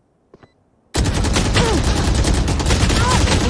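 Rapid rifle shots ring out.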